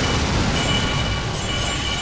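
An energy blast whooshes and crackles.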